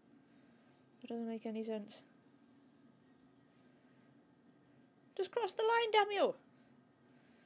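A young woman speaks briefly and with animation into a nearby microphone.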